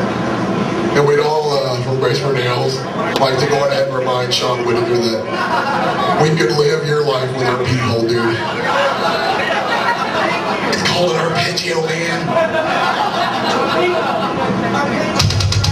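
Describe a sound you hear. A man growls and screams into a microphone through loudspeakers.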